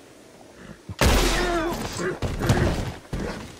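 A gunshot booms loudly and echoes.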